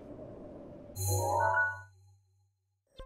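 A game menu opens with a bright chime.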